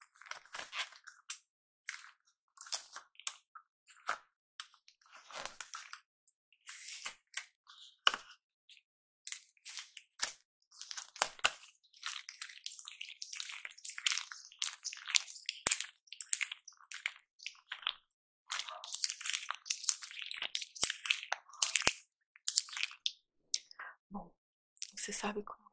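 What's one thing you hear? Latex gloves stretch, snap and rustle close to a microphone.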